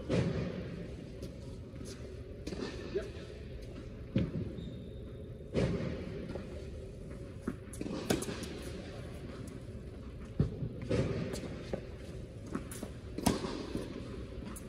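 Sneakers squeak and shuffle on a hard court.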